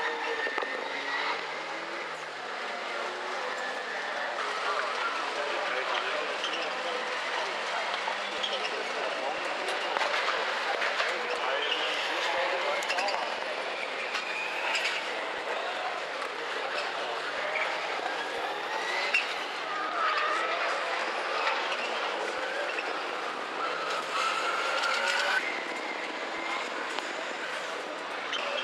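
Racing car engines roar and rev loudly, some way off, as they race around a track.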